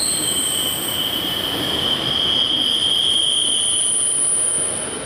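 A train rolls steadily past.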